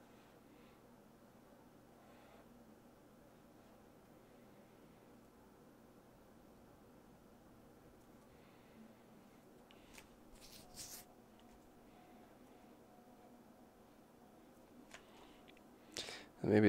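A marker squeaks and scratches softly across paper.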